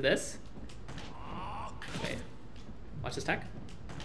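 Punches and kicks land with sharp video game hit sounds.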